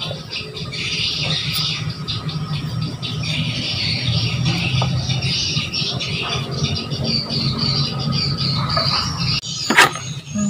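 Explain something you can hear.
Leaves and stems rustle as mangoes are pulled from a bunch.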